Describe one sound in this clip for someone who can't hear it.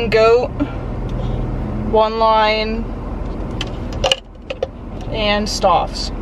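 A plastic cup clicks as it is handled.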